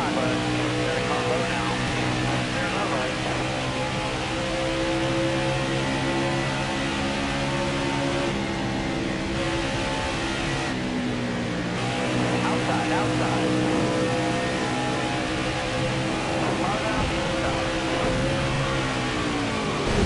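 Racing car engines roar at high speed with a steady droning whine.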